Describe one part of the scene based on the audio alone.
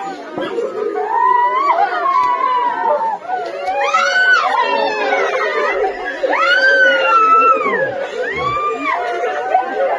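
Women wail and cry loudly in grief.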